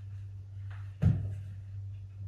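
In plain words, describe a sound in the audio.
A man drops heavily onto a sofa with a soft thump.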